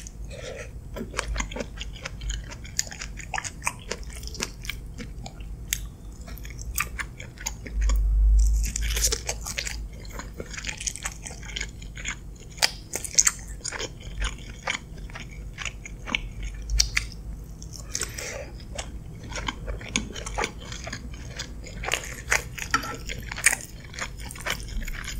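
A woman chews food wetly and close to a microphone.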